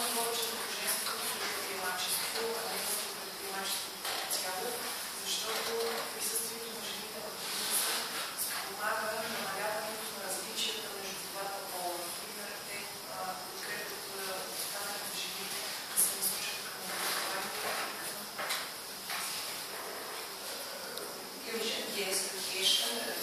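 A woman speaks at the front of a large echoing room, heard from a distance.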